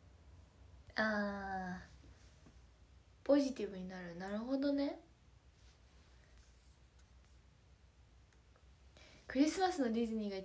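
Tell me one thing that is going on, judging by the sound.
A young woman speaks softly and close by, with long pauses.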